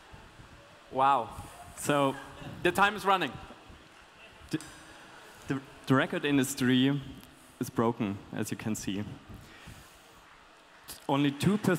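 A young man sings loudly through a microphone and loudspeakers.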